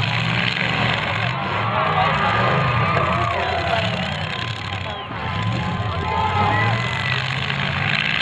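A crowd cheers and shouts in the distance.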